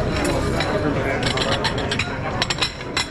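Ceramic plates clink against each other.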